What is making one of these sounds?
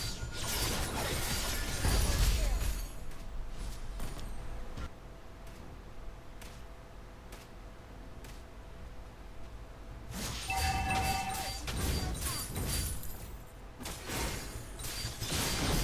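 Video game spells whoosh, crackle and clash in quick bursts.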